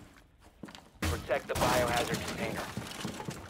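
A wooden barricade is smashed and splinters apart.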